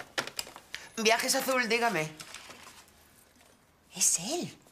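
A woman talks on a telephone.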